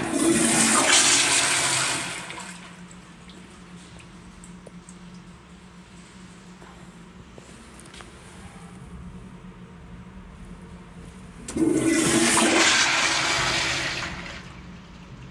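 A toilet flushes with a loud rush of water.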